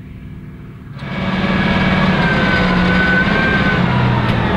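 A hay tedder's tines whir and rattle close by.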